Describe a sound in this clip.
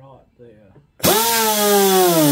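A pneumatic tool whirs loudly with a high whine.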